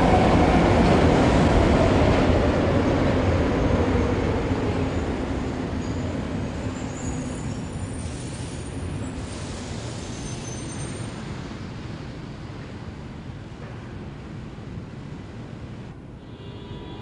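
A metro train rumbles along the track and fades away.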